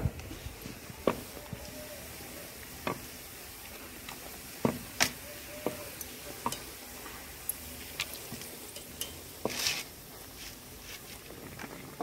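A metal ladle clinks against a pan.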